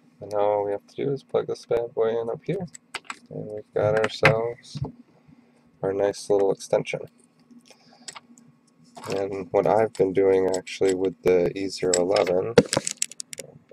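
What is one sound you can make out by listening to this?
Small plastic parts click and rattle as they are handled.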